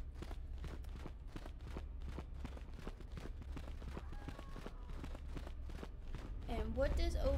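Quick footsteps patter steadily on a hard floor.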